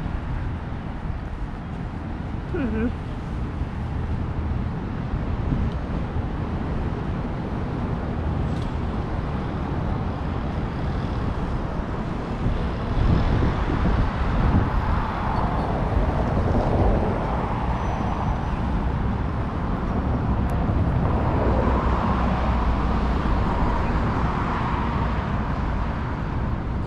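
Traffic hums steadily along a nearby road.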